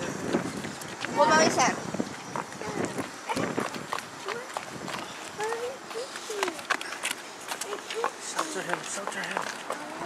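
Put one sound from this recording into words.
Stroller wheels roll over pavement.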